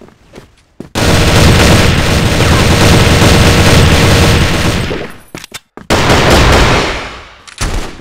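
An automatic rifle fires in rapid, loud bursts.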